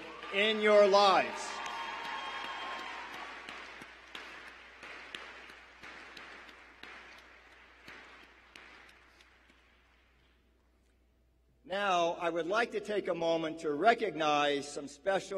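An older man speaks through a microphone in a large echoing hall.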